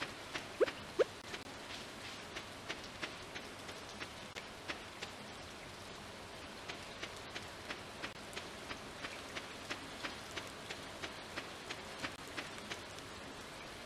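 Footsteps tap quickly and evenly on a dirt path.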